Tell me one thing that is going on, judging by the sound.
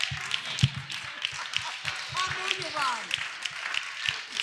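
A woman claps her hands rhythmically.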